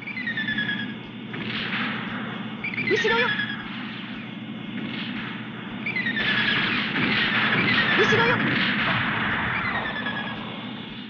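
Video game beam shots fire in bursts with falling zaps.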